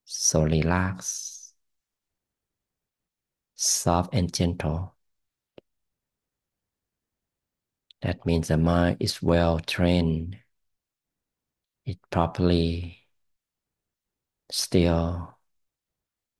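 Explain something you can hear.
A man talks calmly in short phrases over an online call.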